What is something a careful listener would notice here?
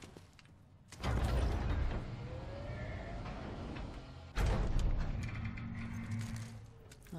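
A crane motor whirs loudly.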